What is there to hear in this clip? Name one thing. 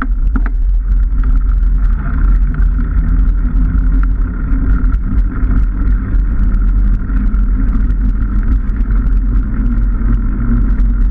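Knobbly bike tyres hum and rattle over a rough path.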